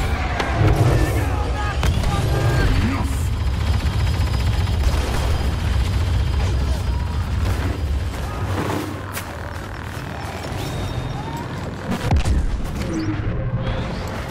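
Laser blasts fire and explosions boom in a battle.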